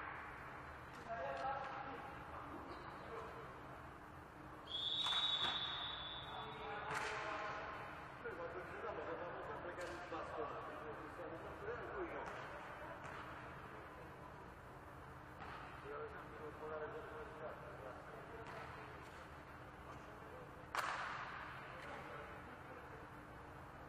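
Men talk calmly to each other in an echoing hall.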